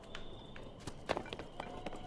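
Footsteps run over rocky ground.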